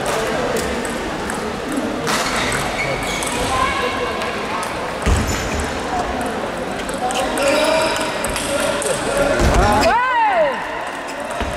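A ping pong ball clicks back and forth across a table.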